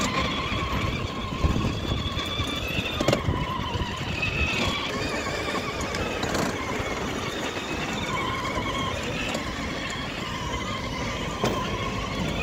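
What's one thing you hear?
Plastic wheels rumble and rattle over paving stones.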